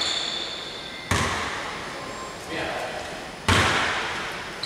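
A basketball bounces on the court floor.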